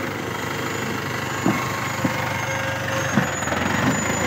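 A loaded trailer rattles and clanks as it rolls past.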